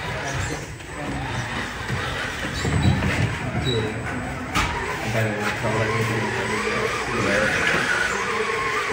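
A small electric motor whirs as a toy truck crawls over rocks.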